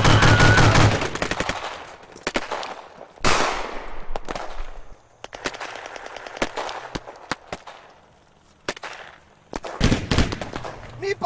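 Gunshots bang loudly outdoors.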